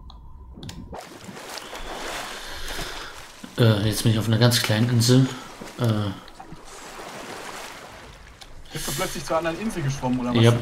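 Water splashes and laps at the surface.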